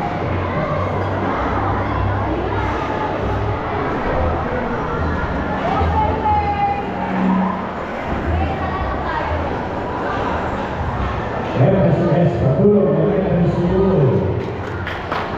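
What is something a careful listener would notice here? A large crowd of people chatters and calls out in a big echoing hall.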